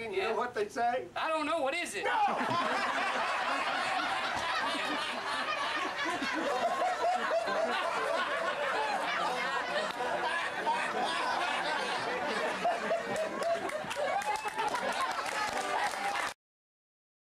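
A banjo is plucked in a lively tune.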